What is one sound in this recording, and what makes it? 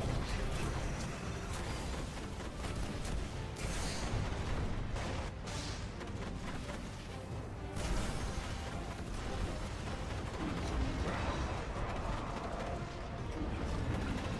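Rapid gunfire rattles and cracks.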